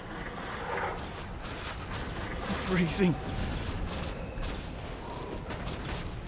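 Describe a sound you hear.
Game explosions and blasts burst during a fight.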